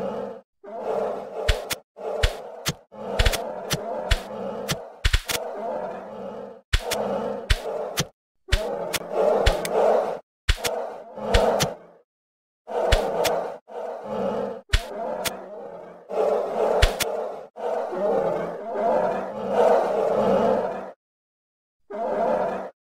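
Ankylosaurs grunt and growl in bursts.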